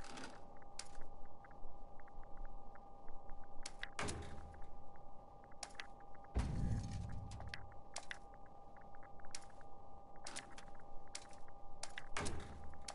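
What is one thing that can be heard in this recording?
Short game menu clicks tick repeatedly.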